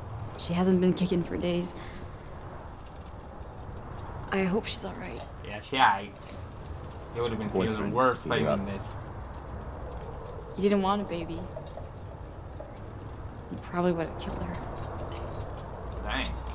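A young woman speaks quietly and sadly.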